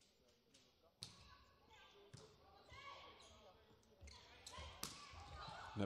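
A volleyball is struck with sharp smacks in a large echoing hall.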